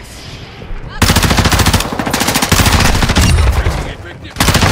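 A submachine gun fires rapid bursts at close range.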